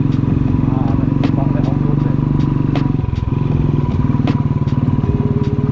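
Tyres crunch over a loose dirt track, with small stones knocking.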